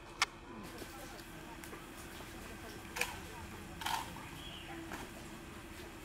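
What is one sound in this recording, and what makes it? Rifles clack sharply in a drill.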